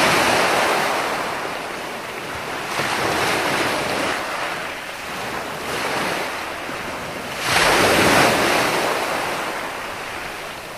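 Ocean waves break and wash onto the shore in steady surges.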